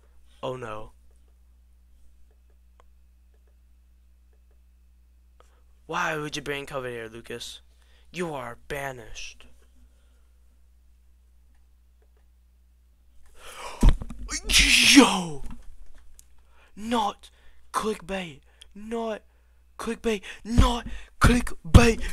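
A young man speaks with animation into a headset microphone, heard close up.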